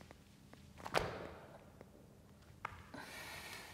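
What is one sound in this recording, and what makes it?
Feet thump softly onto a mat.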